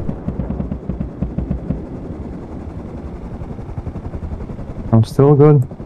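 A helicopter's rotor thumps in the distance.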